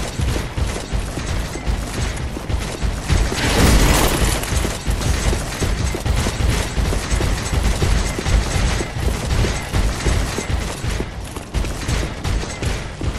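Quick footsteps run across stone.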